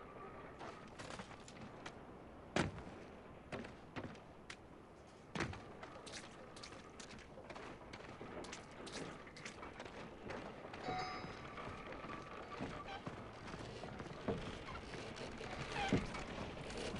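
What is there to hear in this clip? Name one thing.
Footsteps thud and scuff on hard ground.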